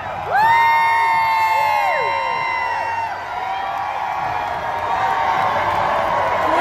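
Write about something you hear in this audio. A large crowd cheers and screams outdoors.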